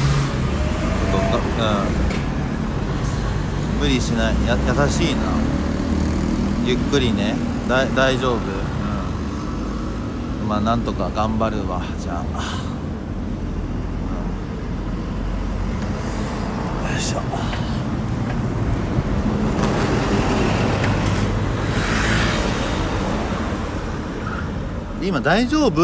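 Traffic rumbles steadily along a nearby road, outdoors.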